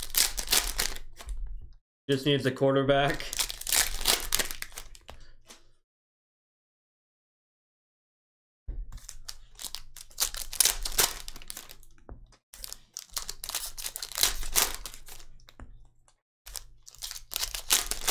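Foil wrappers crinkle and rustle as hands tear open card packs.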